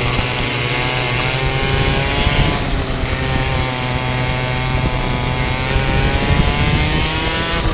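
A kart engine buzzes loudly close by, its pitch rising and falling with the throttle.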